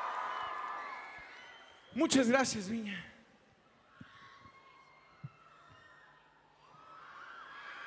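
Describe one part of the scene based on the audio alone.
A large crowd cheers and whistles in a big echoing hall.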